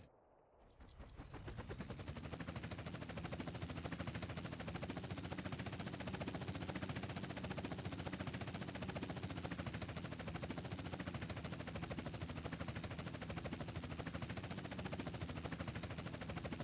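A helicopter's rotor thumps loudly and steadily.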